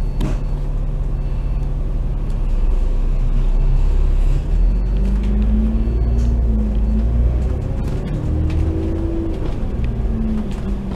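A bus engine rumbles low and steady close by.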